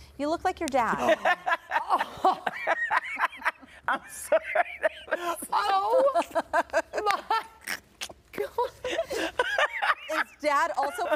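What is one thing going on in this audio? A middle-aged woman laughs heartily.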